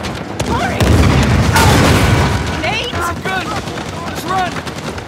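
An explosion booms and debris clatters.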